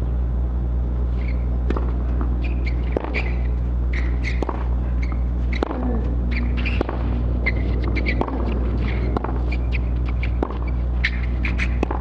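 Rackets strike a tennis ball back and forth in a rally.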